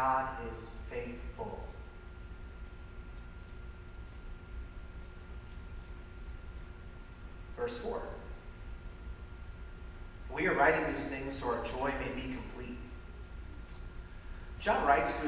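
A man speaks calmly through a microphone in a large echoing hall, with long pauses.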